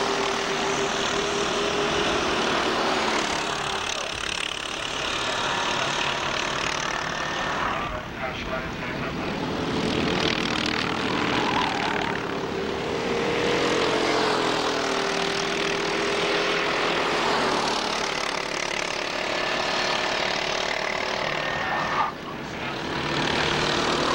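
Go-kart engines buzz and whine as karts race past outdoors.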